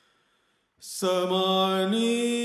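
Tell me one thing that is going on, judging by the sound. A man sings a long, held note into a microphone, then moves up in pitch.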